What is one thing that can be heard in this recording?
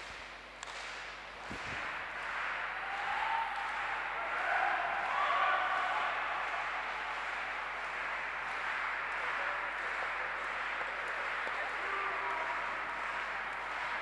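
A crowd murmurs in a large indoor hall.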